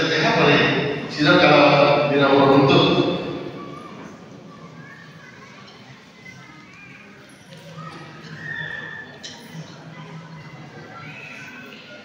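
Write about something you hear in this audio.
A crowd of women talks and murmurs nearby.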